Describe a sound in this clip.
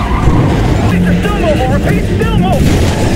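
A police siren wails.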